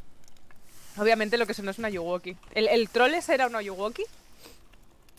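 Meat sizzles over a fire.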